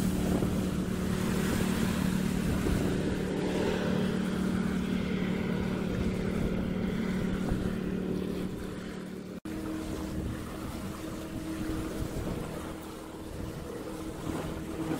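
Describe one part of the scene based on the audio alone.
A jet boat engine roars steadily as the boat speeds away and grows fainter.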